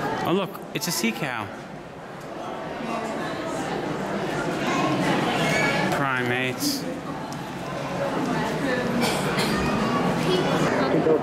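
Men and women chatter in a murmur around a large echoing hall.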